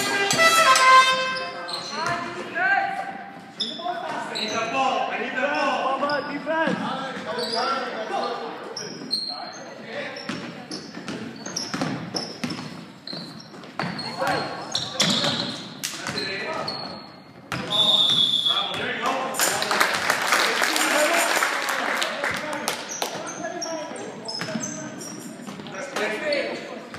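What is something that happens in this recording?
A basketball bounces on a hard floor, echoing in a large hall.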